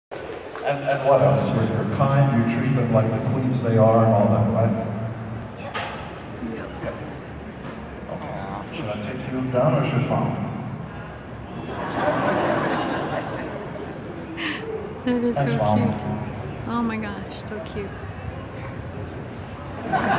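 A woman speaks into a microphone over a loudspeaker in a large echoing hall.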